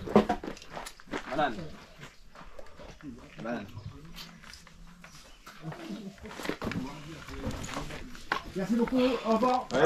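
A woman talks with a man close by.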